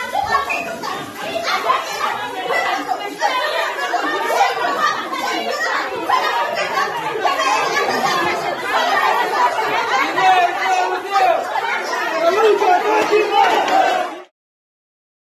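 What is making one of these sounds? A crowd of women chants and shouts loudly in an echoing room.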